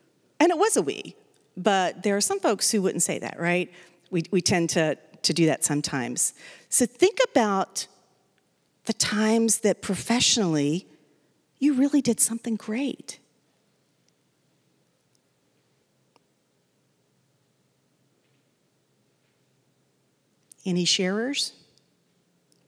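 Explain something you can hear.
A woman speaks calmly through a microphone in a large hall, pausing between phrases.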